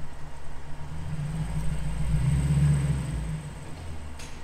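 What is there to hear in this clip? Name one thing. A car engine revs up briefly and settles back.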